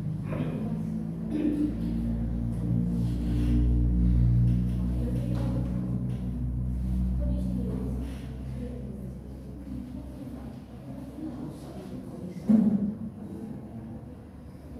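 Young people talk quietly among themselves in a room.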